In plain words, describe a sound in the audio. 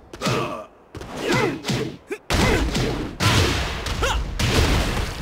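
A fighter shouts with each strike.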